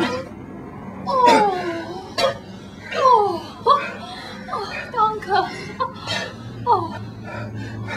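A man speaks in a gasping voice.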